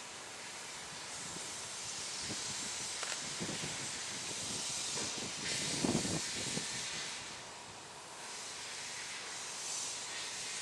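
A narrow-gauge steam locomotive hisses as it vents steam in the distance.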